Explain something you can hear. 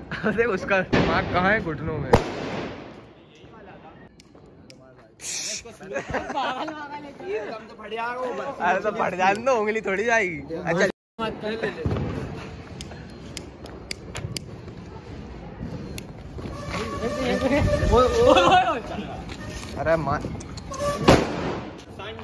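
Firecrackers burst with sharp bangs nearby.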